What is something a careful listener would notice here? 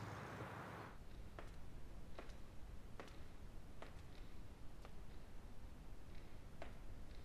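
High heels click on a hard floor in an echoing room.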